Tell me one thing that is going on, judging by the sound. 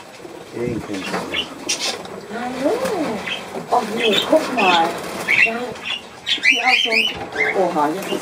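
A birdcage rattles as a man lifts it.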